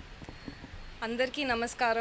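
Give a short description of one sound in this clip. A young woman speaks into a microphone, amplified outdoors.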